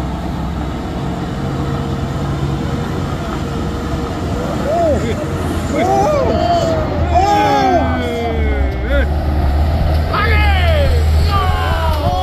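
A truck engine rumbles low and grows louder as it approaches.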